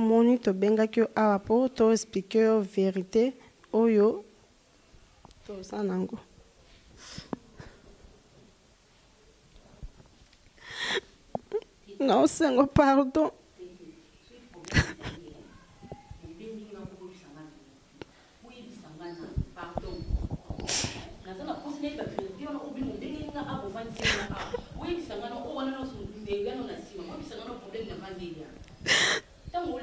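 A woman speaks emotionally into a microphone.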